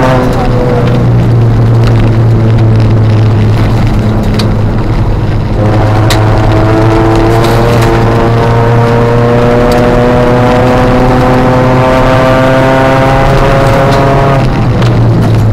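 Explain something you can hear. Tyres crunch and rumble over gravel.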